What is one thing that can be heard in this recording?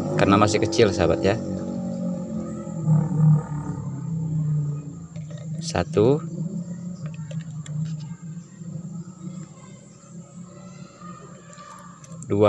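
Liquid trickles from a bottle into a bucket.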